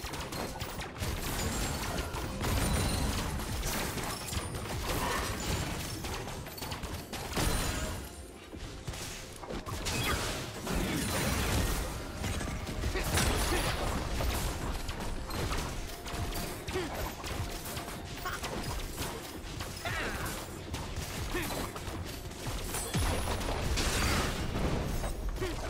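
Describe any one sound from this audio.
Game spells and attacks crackle and burst in a busy fight.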